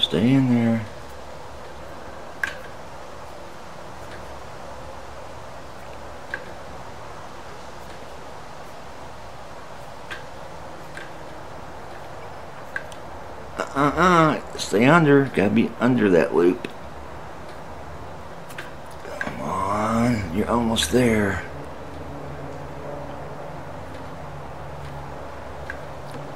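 A guitar tuning peg clicks faintly as it is turned.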